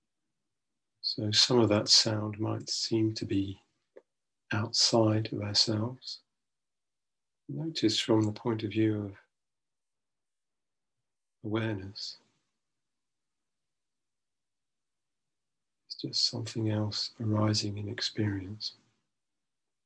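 A man speaks slowly and calmly through a microphone on an online call, with long pauses.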